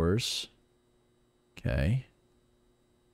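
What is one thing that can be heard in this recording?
A young man speaks briefly and loudly into a close microphone.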